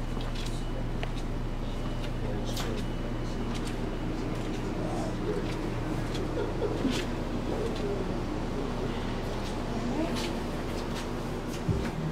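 Footsteps tread softly on a hard floor.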